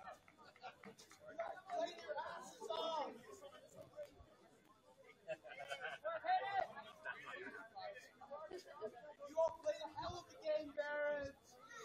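Young players shout and call out to each other outdoors, some way off.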